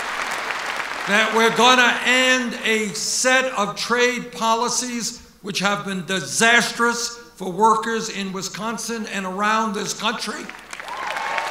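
An elderly man speaks forcefully through a loudspeaker system.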